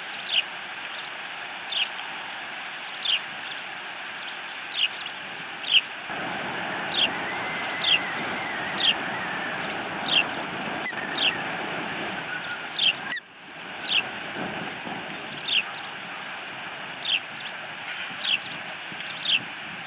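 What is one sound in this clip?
A bird of prey gives sharp, high whistling chirps again and again.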